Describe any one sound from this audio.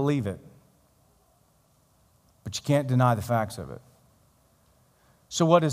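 A man speaks animatedly through a microphone, in short bursts with pauses.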